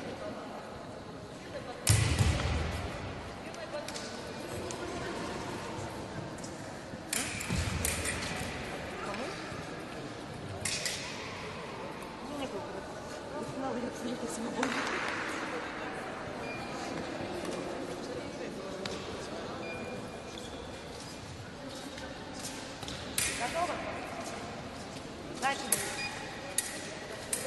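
Fencers' feet shuffle and stamp on the floor in a large echoing hall.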